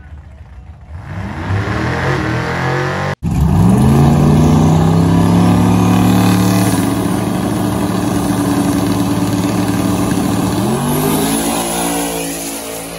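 Loud race car engines roar and rev hard, outdoors.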